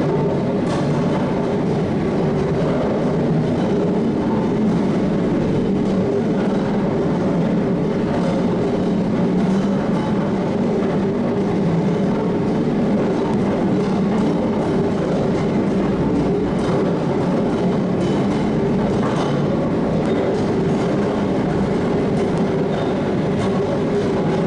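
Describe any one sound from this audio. A large winding engine rumbles steadily as its drum and wheels turn.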